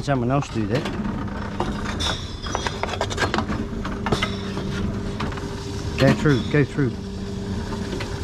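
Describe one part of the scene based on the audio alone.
A recycling machine hums steadily.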